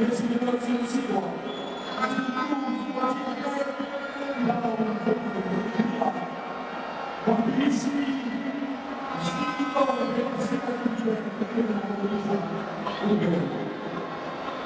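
A man talks loudly with animation close by.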